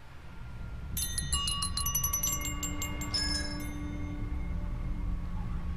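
Small bells ring and chime in a quick cascade.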